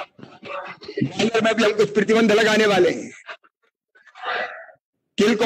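A middle-aged man speaks forcefully into a microphone, heard through loudspeakers.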